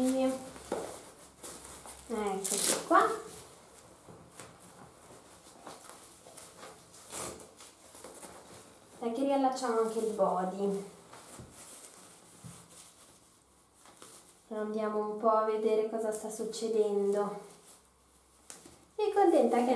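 A paper nappy rustles as hands fold and fasten it.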